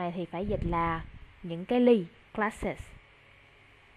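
A woman speaks brightly over an online call.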